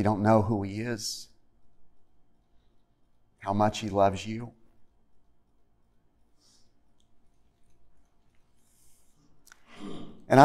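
A middle-aged man speaks calmly through a microphone in an echoing room, pausing between phrases.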